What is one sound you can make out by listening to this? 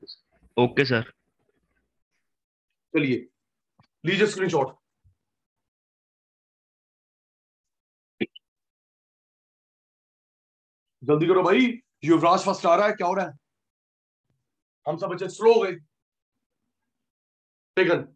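A man speaks calmly into a clip-on microphone, in short bursts with long pauses.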